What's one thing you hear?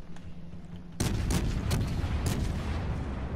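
Heavy shells explode loudly in the water.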